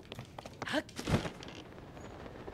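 A glider cloth flaps open with a whoosh.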